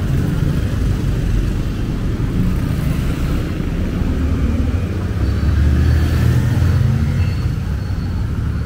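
Motorcycle engines hum and buzz past on a street.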